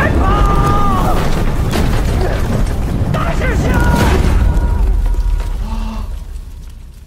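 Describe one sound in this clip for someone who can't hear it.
A man shouts urgently nearby.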